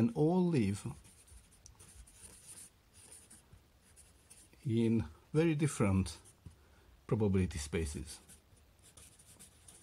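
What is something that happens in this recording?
A marker squeaks and scratches softly across a whiteboard.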